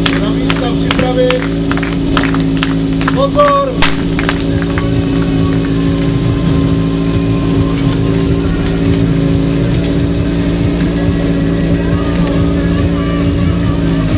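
A pump engine drones steadily close by.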